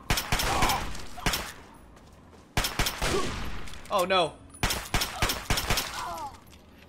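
A pistol fires a series of loud shots.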